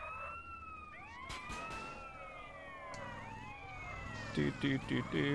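A forklift engine hums low and steady.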